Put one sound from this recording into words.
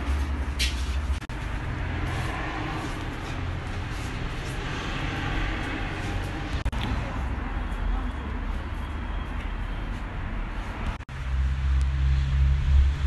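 A small group of people murmurs quietly outdoors.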